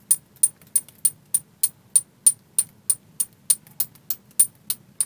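A small hammer taps a metal chisel into wood in a quick, steady rhythm.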